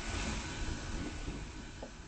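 A roller coaster train rumbles along its track.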